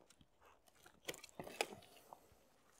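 Pruning shears snip through a branch.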